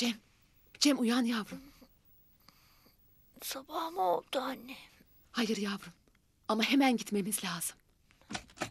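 A woman speaks softly and tenderly, close by.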